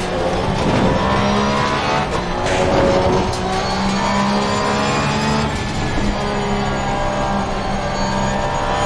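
A race car engine roars loudly, rising in pitch and dropping briefly as the gears shift.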